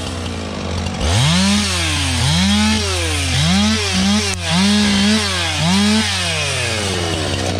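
A chainsaw revs up and down in short bursts.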